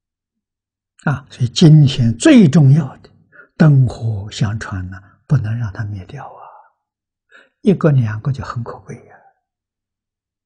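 An elderly man speaks calmly and steadily, close to a microphone.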